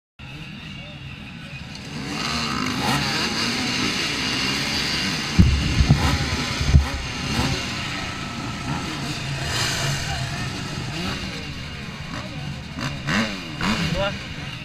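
Dirt bike engines rev and buzz nearby outdoors.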